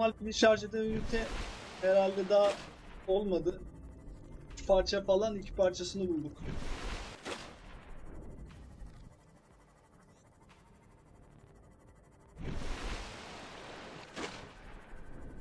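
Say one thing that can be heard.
A small submarine splashes loudly through water.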